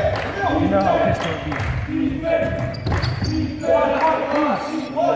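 Young men call out to each other across the hall.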